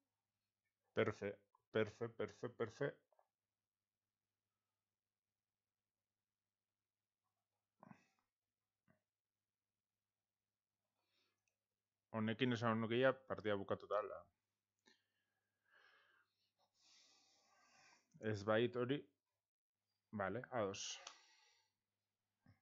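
A man talks with animation through a close microphone, in short bursts.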